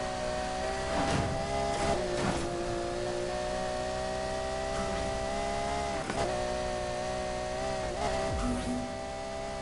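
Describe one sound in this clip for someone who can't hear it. Air whooshes past a speeding car.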